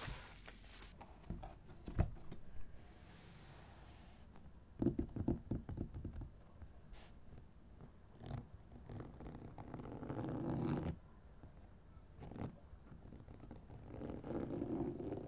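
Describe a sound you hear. Fingertips tap and scratch on a textured cover close up.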